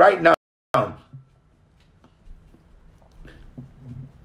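A man sobs quietly.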